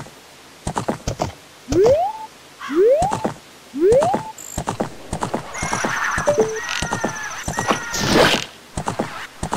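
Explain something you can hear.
A horse gallops with quick, rhythmic hoofbeats.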